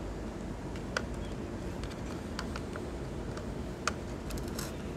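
Fingers tap and click against a plastic plug and socket.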